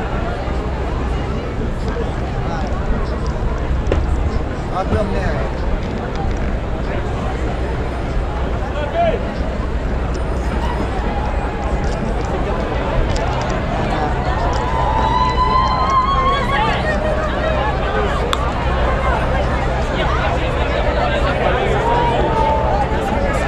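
A large crowd chatters all around outdoors.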